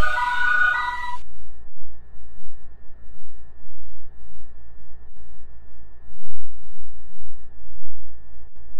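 A train idles with a low, steady hum.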